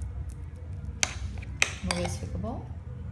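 A metal spoon scrapes and clinks against a plate.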